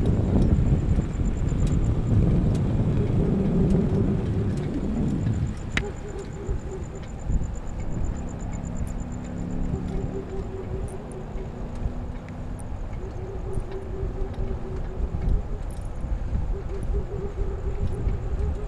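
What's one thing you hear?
Wind rushes past outdoors as a bicycle rides along.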